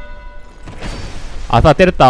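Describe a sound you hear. A spear swishes through the air.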